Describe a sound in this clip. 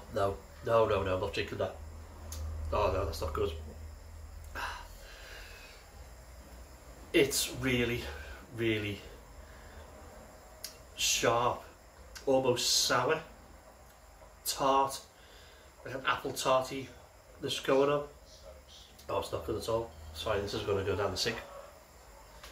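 A middle-aged man talks calmly and close by, with pauses.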